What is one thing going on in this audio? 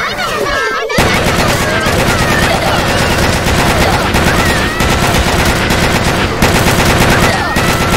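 A game gun fires rapid bursts of shots.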